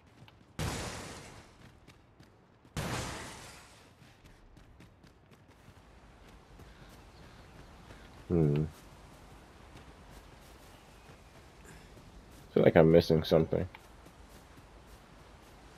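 Footsteps tread on stone and grass.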